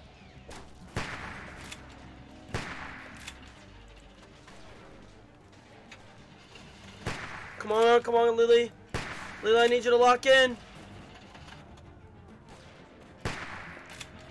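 A rifle fires with sharp cracks.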